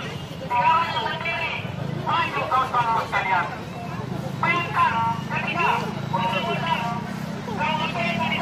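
A man talks loudly nearby outdoors.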